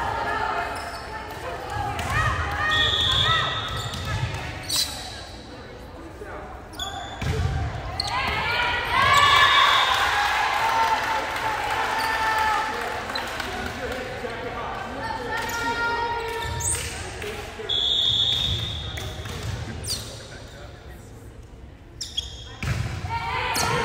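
Young women players call out and shout to each other in an echoing gym.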